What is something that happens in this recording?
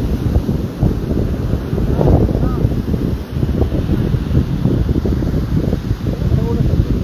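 Strong wind blusters and buffets outdoors.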